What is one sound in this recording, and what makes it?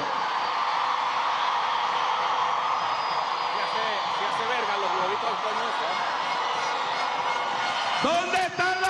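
A large outdoor crowd cheers and chants loudly.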